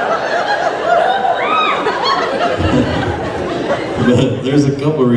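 Several men sing together through microphones on a stage.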